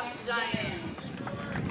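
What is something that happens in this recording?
A young woman speaks into a microphone outdoors.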